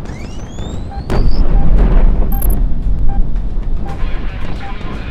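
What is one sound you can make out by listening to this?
A cockpit warning tone beeps at a steady, quick pace.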